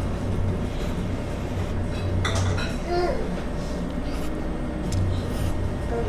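A woman slurps noodles loudly.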